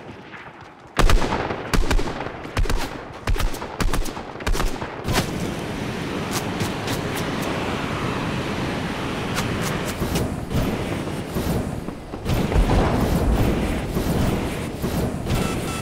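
A jetpack roars and hisses in bursts, then steadily.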